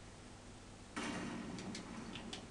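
A pistol fires a shot with a loud bang.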